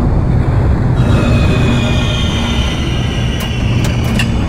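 Train wheels squeal high and shrill on a curve.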